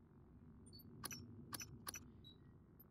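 Soft electronic clicks tick as a menu is scrolled.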